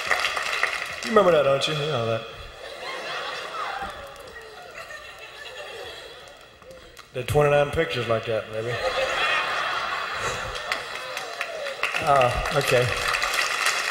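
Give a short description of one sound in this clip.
A man speaks into a microphone with amusement.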